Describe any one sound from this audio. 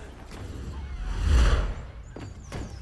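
A rushing whoosh sweeps past.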